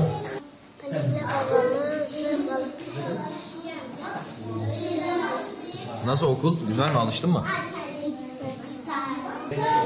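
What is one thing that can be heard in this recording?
A young boy speaks close by, answering calmly.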